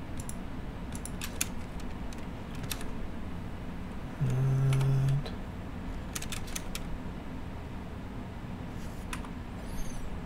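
Metal blocks snap into place with sharp clicks.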